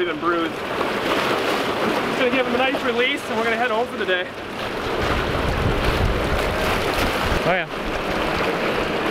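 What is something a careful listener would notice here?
River water rushes and splashes steadily.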